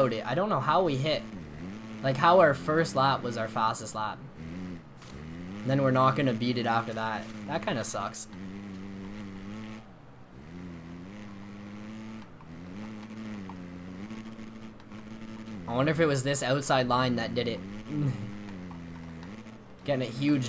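A motorbike engine drones steadily and revs up and down.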